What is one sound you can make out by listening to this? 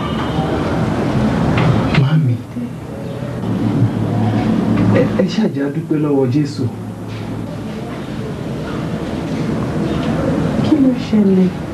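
A young woman speaks weakly and slowly.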